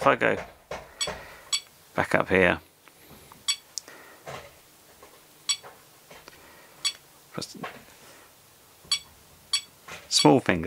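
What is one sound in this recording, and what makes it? An electronic device gives short, high beeps as its buttons are pressed.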